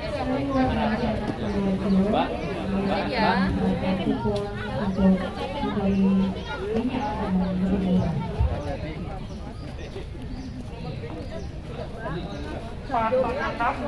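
A crowd of men and women talk and call out all around, close by.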